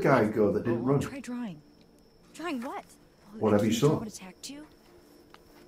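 A young woman speaks softly and questioningly.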